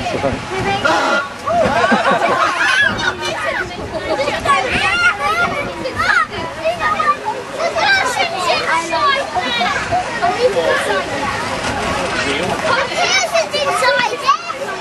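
Adults chatter in the background.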